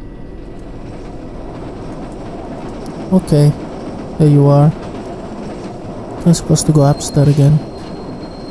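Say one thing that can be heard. A subway train rumbles into a station.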